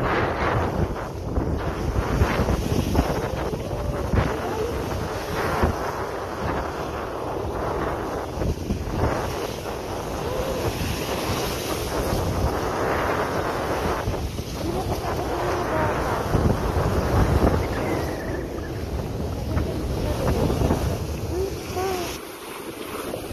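Strong wind roars outdoors.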